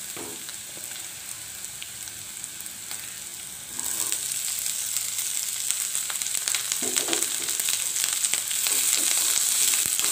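A wooden spatula scrapes and stirs in a non-stick wok.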